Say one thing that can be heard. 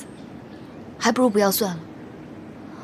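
Another young woman answers calmly, close by.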